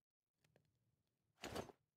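A furnace fire crackles softly.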